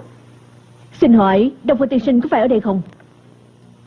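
A young woman asks a question calmly.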